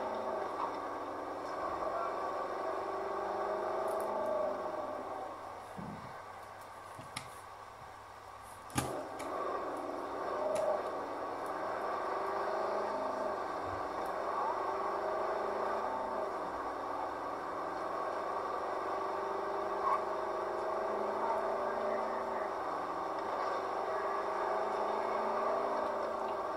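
A car engine hums and revs steadily from a game.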